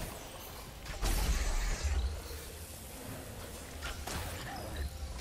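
An arrow whooshes from a bow.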